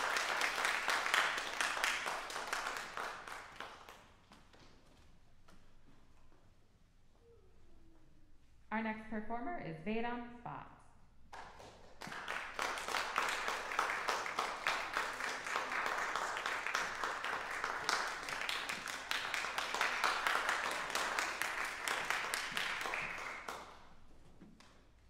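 An audience applauds in an echoing hall.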